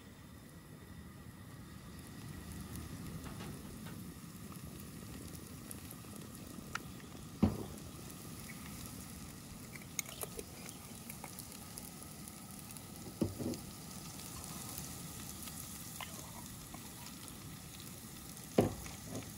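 Potatoes sizzle softly in hot oil in a pan.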